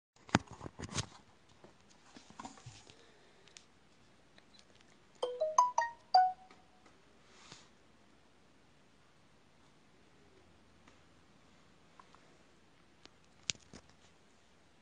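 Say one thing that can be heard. A phone is bumped and rustles as it is handled up close.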